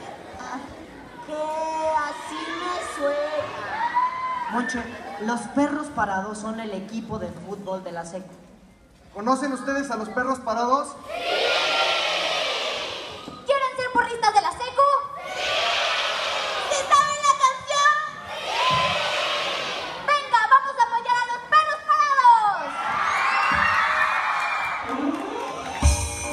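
Young performers sing together through loudspeakers in a large echoing hall.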